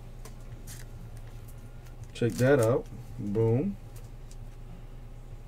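A foil wrapper crinkles and tears as hands open a card pack.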